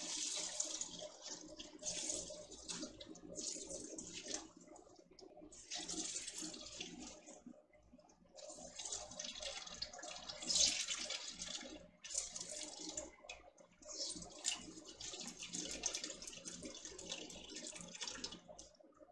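A wet cloth bag squelches as hands squeeze it.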